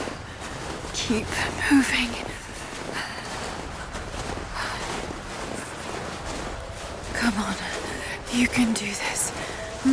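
A young woman breathes heavily and gasps.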